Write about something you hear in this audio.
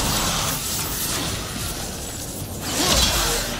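A blast of frost hisses and roars.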